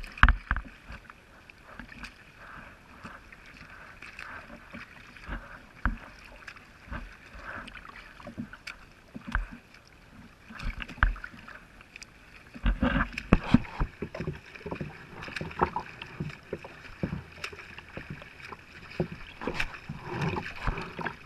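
Water laps and splashes close by.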